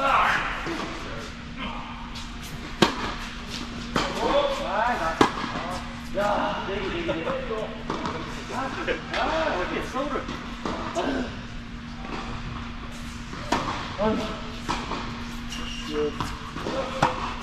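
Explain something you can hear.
Tennis balls are struck with rackets, with sharp pops echoing in a large hall.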